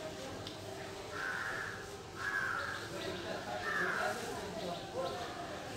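Cloth rustles as a young woman shakes out a sari.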